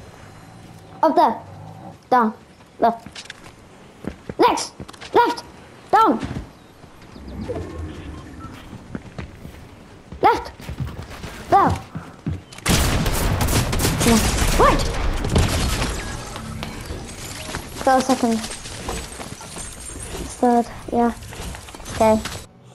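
Game sound effects chime and swoosh in quick bursts.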